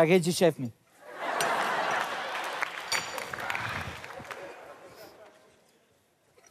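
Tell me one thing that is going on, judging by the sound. A studio audience laughs and applauds.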